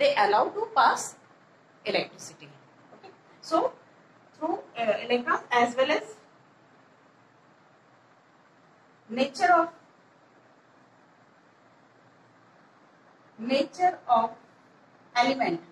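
A middle-aged woman explains calmly, in pauses, close by.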